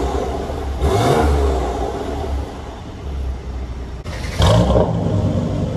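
A car engine idles with a deep exhaust rumble, revving loudly now and then, echoing in a large enclosed space.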